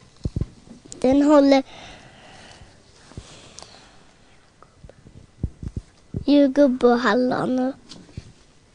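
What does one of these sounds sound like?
A young girl speaks in a high voice, close to a microphone.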